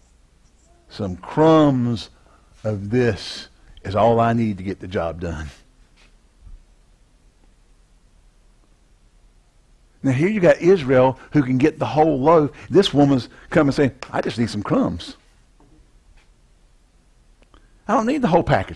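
A man speaks with animation through a clip-on microphone, in short bursts with pauses.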